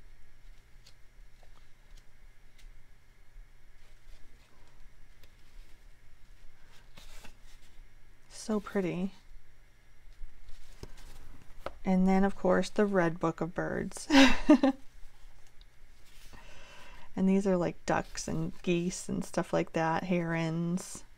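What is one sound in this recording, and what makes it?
Paper pages rustle and flutter as they are flipped.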